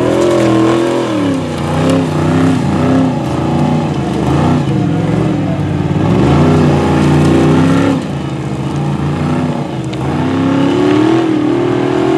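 Tyres spray loose gravel.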